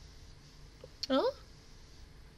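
A young woman makes a short, rising vocal sound into a close microphone.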